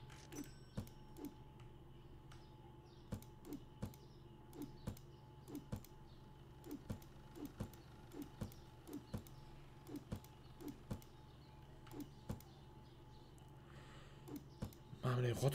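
Footsteps knock steadily on a wooden floor.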